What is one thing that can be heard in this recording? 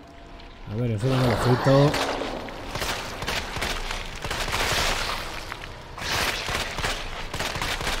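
Gunshots fire in quick bursts, echoing.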